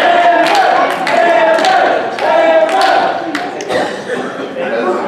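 A crowd chants loudly in a large echoing hall.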